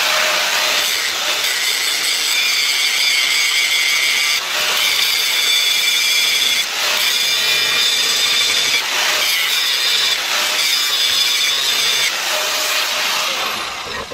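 An angle grinder whines loudly as it cuts into metal, with brief dips and rises in pitch.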